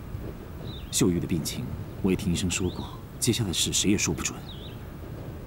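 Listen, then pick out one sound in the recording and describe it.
An elderly woman speaks tearfully, close by.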